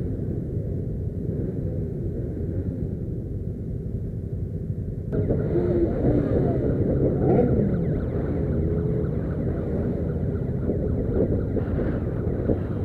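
Wind buffets a microphone on a moving motorcycle.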